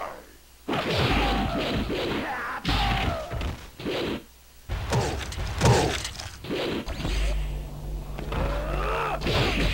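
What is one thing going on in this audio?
Heavy blows land with loud, sharp thuds.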